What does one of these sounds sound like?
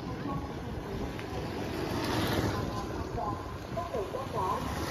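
A motor scooter drives past close by.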